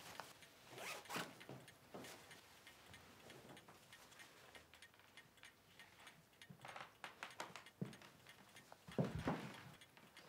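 Fabric rustles as a dress is pulled on.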